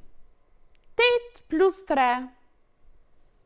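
A woman speaks clearly into a close microphone.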